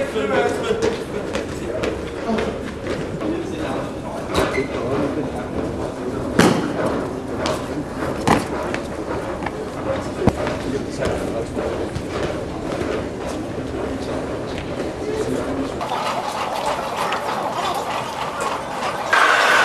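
A crowd murmurs and chatters nearby, echoing.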